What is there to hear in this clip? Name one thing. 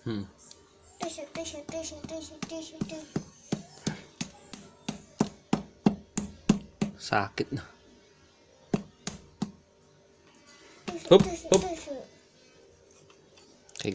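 A wooden handle knocks repeatedly against a pumpkin stem.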